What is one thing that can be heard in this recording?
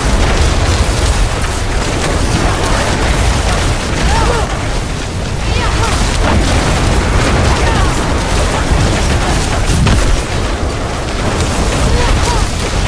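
Spells and blows crash loudly in a chaotic fight.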